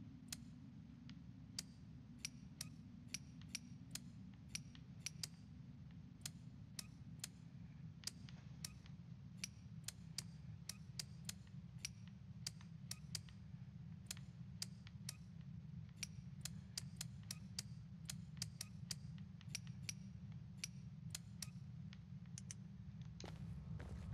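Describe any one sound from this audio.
The dials of a metal combination padlock click sharply as they are turned, one notch at a time.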